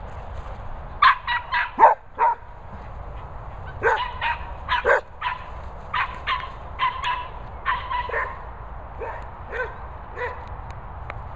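Dogs bark excitedly in short bursts.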